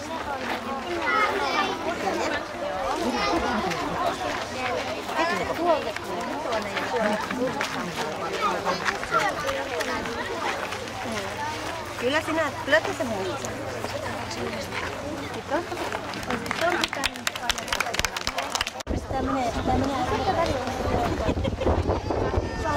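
A crowd of women and children chatter close by outdoors.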